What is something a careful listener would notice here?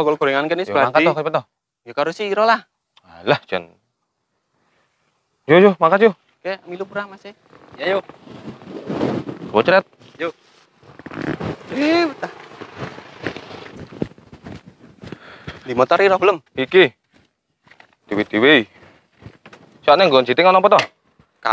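Young men talk with animation close by.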